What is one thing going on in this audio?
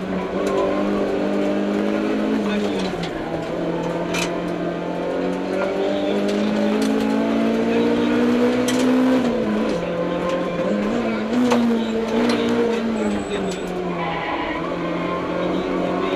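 A car engine roars loudly, its pitch rising and dropping with gear changes.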